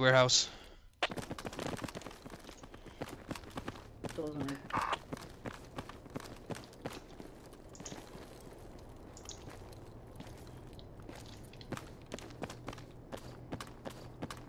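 Footsteps crunch quickly over dry dirt.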